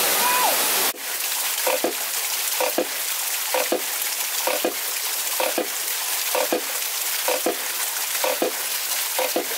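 A small stream of water trickles.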